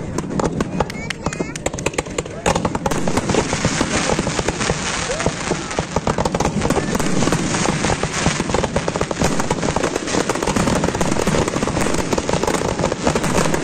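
Fireworks crackle and fizz as sparks spread out.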